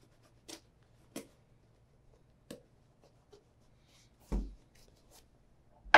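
Hands handle a leather shoe with soft knocks and creaks.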